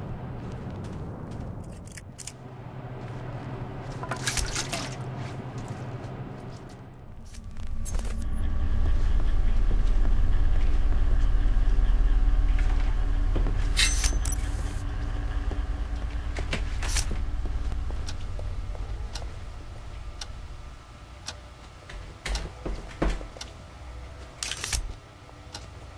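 Soft footsteps creep across a hard floor.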